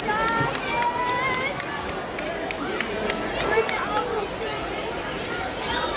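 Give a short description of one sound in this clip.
A large choir of young children sings together in a large hall.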